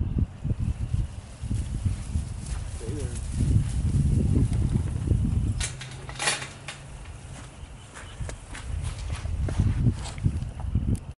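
Sheep trot across grass with soft, quick hoofbeats.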